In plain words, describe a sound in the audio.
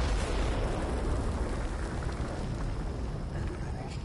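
Gunfire crackles rapidly and loudly, then dies away.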